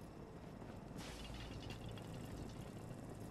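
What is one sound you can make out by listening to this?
A hovering robot hums with a steady jet hiss.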